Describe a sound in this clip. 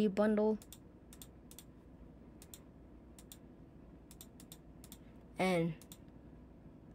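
A computer mouse clicks repeatedly.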